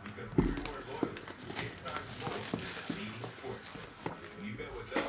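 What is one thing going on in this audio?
Plastic wrapping crinkles and tears as a box is opened.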